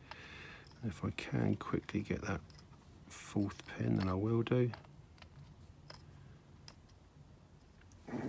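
Metal tweezers click lightly against small parts.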